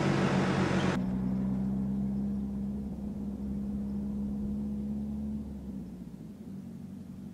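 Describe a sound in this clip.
A pickup truck engine hums as it drives away and fades.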